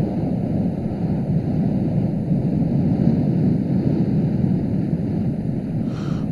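Wind blows across an open field and rumbles against the microphone.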